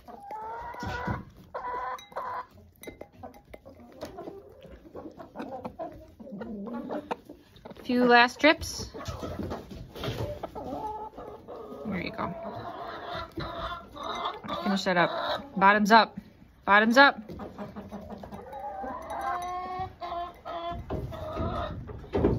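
A hen's beak taps rapidly against a glass cup.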